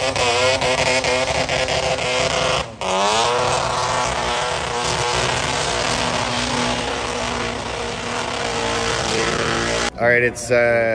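A van's engine roars at high revs.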